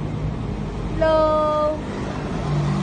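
A dog whines briefly nearby.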